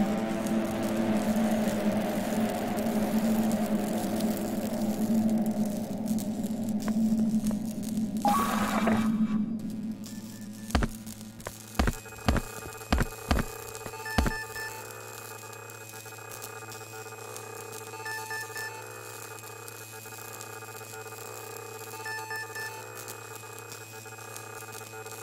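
Electronic game music plays.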